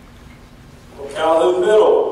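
A woman speaks through a microphone over loudspeakers in a large hall.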